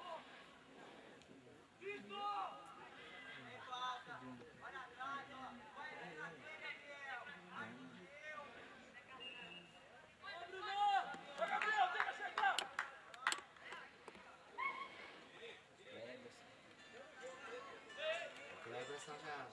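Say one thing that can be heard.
Young players shout to each other outdoors across an open field.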